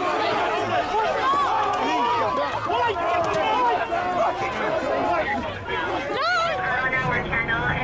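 A crowd of men and women shout and scream loudly close by.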